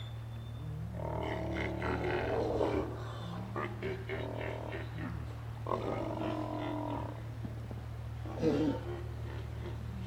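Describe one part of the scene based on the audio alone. Sea lions groan and bark close by.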